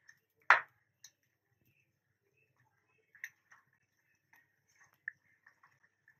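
A wooden spoon stirs and scrapes in a pan.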